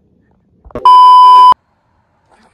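A steady high test tone beeps briefly.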